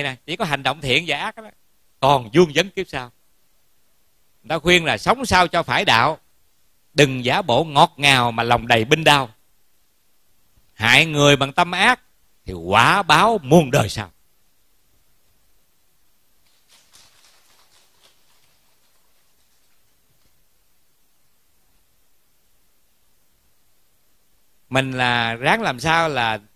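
A middle-aged man speaks calmly through a microphone in short phrases.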